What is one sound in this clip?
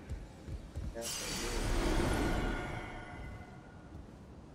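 A magical shimmering whoosh sounds.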